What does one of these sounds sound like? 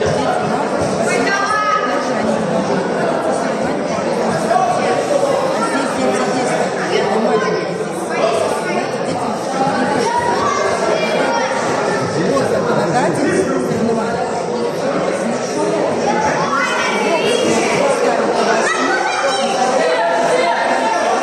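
Men shout encouragement loudly from the crowd.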